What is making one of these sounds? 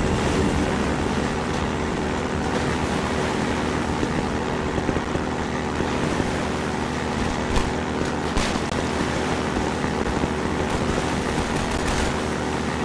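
Water splashes and rushes under a speeding boat.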